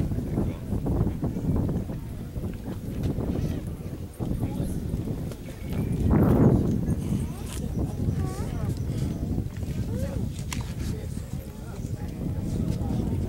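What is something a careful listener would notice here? A crowd of men and women murmurs quietly outdoors.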